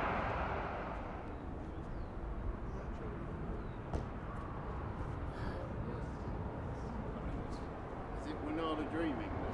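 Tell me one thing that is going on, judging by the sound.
An approaching airliner's engines rumble low in the distance.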